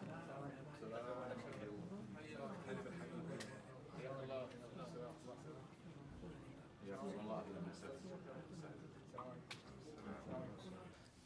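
Several men talk calmly nearby.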